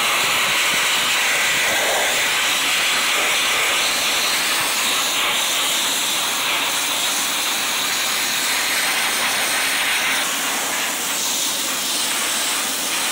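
A sandblaster hisses loudly and steadily, spraying grit against metal.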